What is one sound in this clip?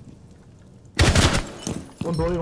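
A rifle fires a short burst of gunshots.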